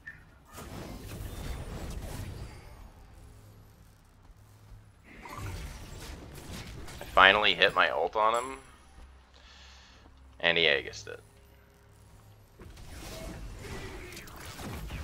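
Magical blasts and weapon hits crackle and whoosh in a fight.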